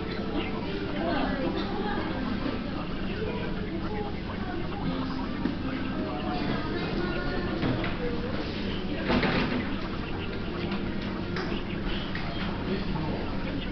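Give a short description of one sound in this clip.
A man talks quietly close by.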